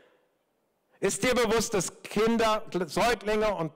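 An older man speaks with animation into a microphone, heard through loudspeakers.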